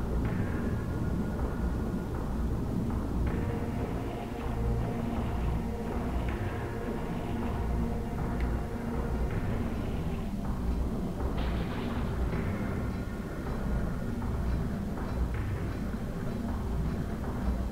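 Water swirls and sloshes as a figure swims underwater.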